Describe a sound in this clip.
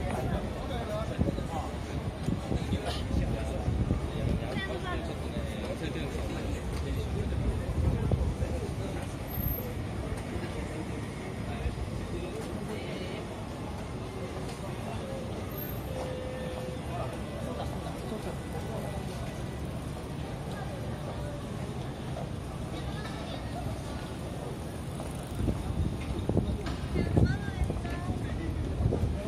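Many people chatter and murmur on a busy street outdoors.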